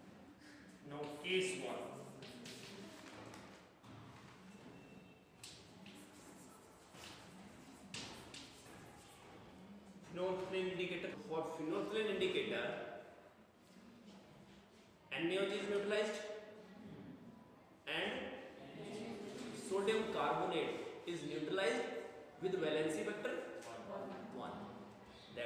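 A man lectures with animation, close by.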